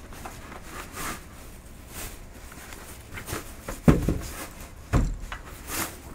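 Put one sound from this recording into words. A cloth bag rustles as it is pulled off.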